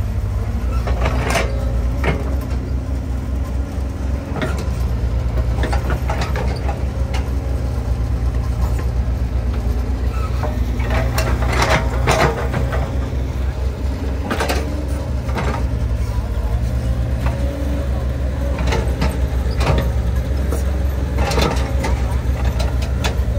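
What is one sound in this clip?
An excavator bucket scrapes and thumps into wet soil.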